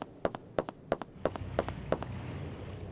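Boots step on hard ground.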